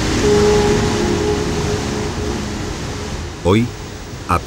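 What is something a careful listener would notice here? Waves crash and roar loudly.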